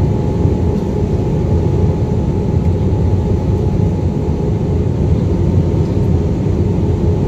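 A jet engine roars steadily, heard from inside the cabin.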